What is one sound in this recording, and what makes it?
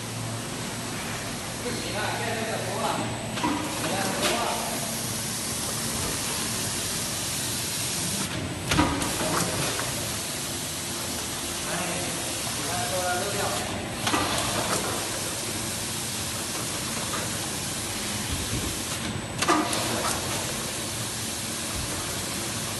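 A blister packing machine hums as it runs.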